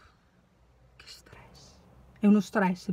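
A young woman speaks close to the microphone.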